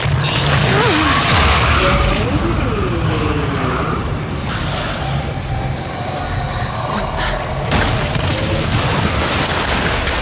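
Wind roars steadily through a raging storm.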